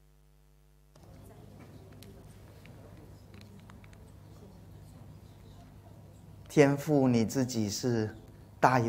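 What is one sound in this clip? A crowd of men and women murmurs quietly nearby.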